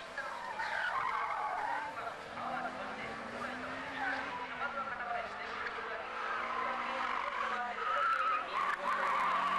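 Tyres squeal on asphalt as a car slides through corners.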